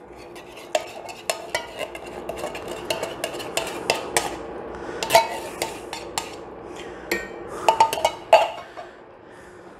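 Liquid pours from a can into a pot.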